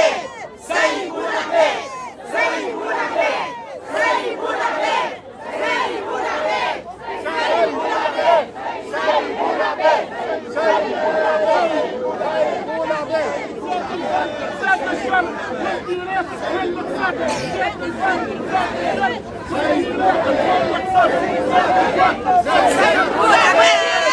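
A crowd of men and women chants loudly outdoors.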